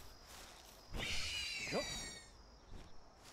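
A large bird creature lets out a shrill, gliding screech.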